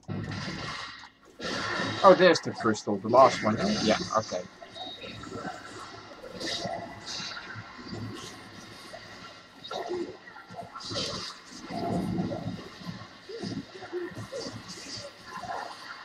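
Magic blasts crackle and boom.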